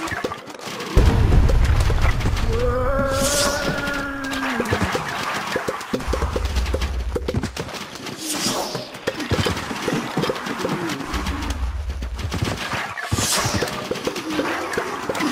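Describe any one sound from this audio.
A sandstorm wind gusts and whooshes.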